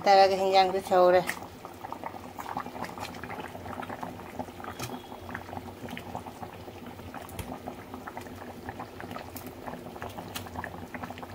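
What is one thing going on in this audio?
A thick curry bubbles and simmers in a pan.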